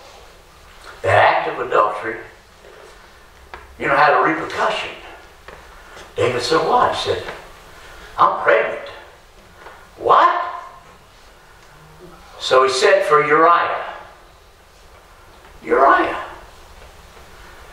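A middle-aged man speaks with animation in bursts, heard through a microphone in a large echoing room.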